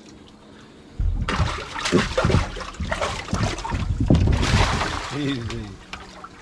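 Water churns and gushes loudly into a tank.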